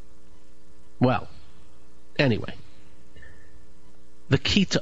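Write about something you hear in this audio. A man speaks calmly into a microphone in short bursts.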